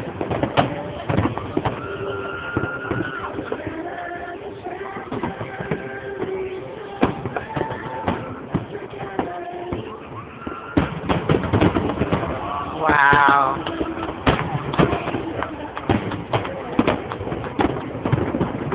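Fireworks boom and crackle overhead.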